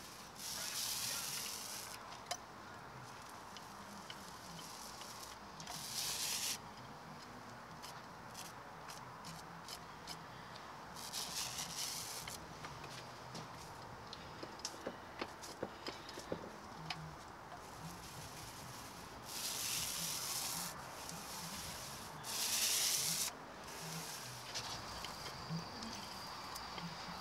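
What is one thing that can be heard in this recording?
A paint roller swishes and rasps against a metal surface in bursts.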